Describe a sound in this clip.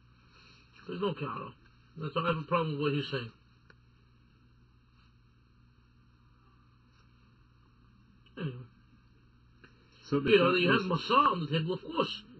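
A middle-aged man speaks calmly in short bursts.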